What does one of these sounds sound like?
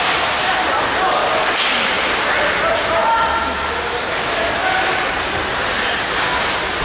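A crowd of spectators chatters and shouts throughout.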